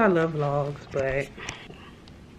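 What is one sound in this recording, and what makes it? A woman speaks close up.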